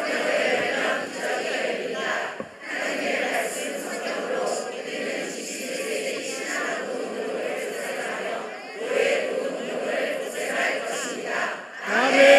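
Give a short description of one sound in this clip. A large choir of children and adults sings together in a big echoing hall.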